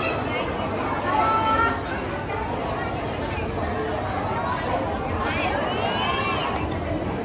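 Dishes and cutlery clink nearby.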